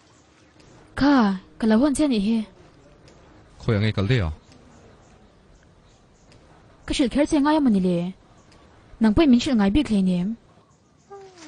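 A young woman speaks loudly and with animation close by.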